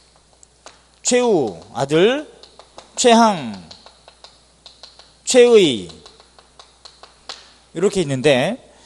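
A middle-aged man speaks with animation through a microphone, in short bursts.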